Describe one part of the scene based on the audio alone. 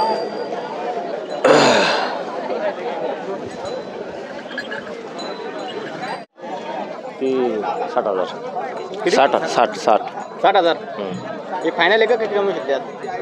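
A crowd of men chatters outdoors all around.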